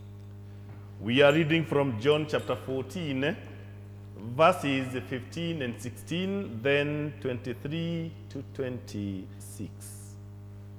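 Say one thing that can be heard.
An elderly man speaks through a microphone, slow and solemn, in an echoing hall.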